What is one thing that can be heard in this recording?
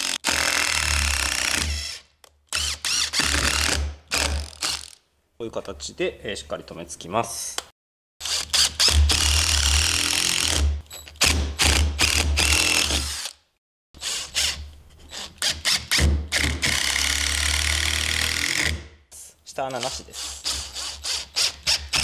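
An electric screwdriver whirs in short bursts, driving screws into wood.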